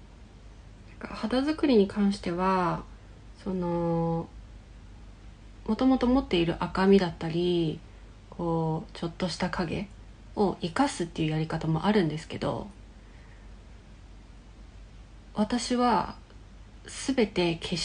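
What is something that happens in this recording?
A young woman talks calmly and close to the microphone.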